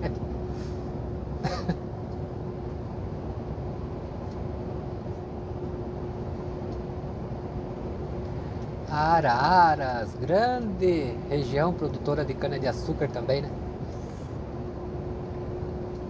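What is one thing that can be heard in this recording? A vehicle's engine drones steadily while driving.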